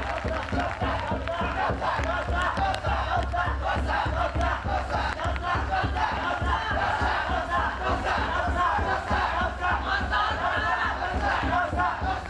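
Many feet shuffle and stamp on wet pavement.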